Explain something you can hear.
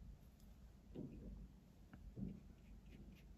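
A paintbrush dabs and clinks in a small paint jar.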